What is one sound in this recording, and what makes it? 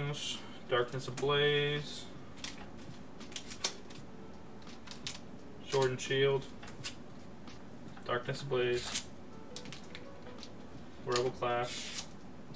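Card packs crinkle and tap as a hand lays them down.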